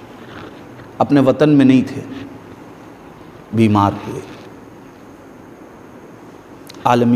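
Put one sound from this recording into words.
A man speaks calmly into a clip-on microphone, in short phrases with pauses.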